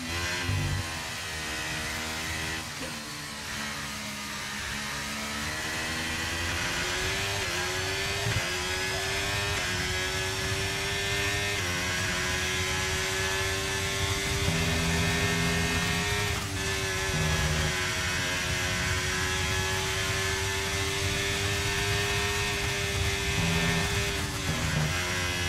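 A racing car engine screams at high revs, dropping in pitch at each upshift and rising again as the car accelerates.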